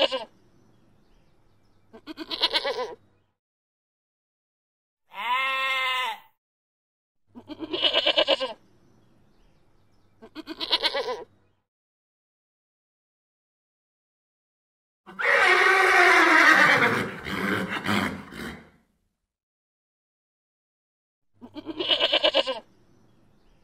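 A goat bleats loudly in short, wavering cries.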